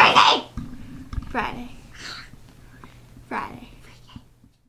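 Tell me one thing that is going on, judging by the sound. A young girl laughs close by.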